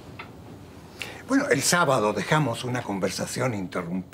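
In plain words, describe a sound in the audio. An elderly man speaks warmly and with animation, close by.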